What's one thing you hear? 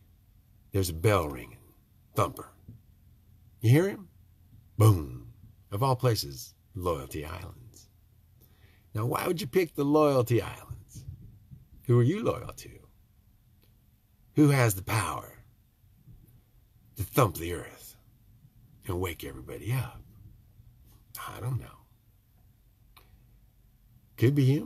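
A middle-aged man talks with animation close to a microphone, with pauses between phrases.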